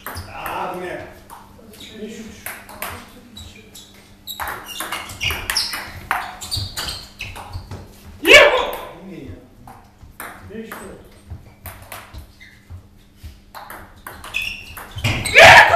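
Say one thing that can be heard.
A table tennis ball clicks quickly back and forth off paddles and a table.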